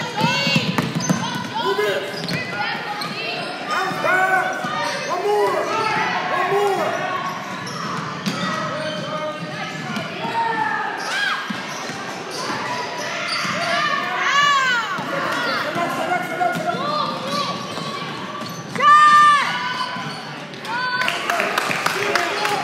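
Young players and spectators shout and call out across the gym.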